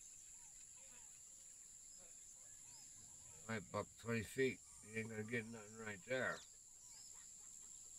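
A fishing reel winds in line with a soft whirring.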